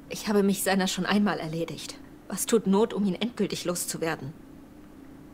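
A young woman speaks questioningly, close and clear.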